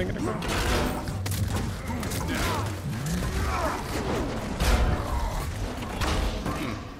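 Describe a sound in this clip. Video game combat sounds crackle and boom.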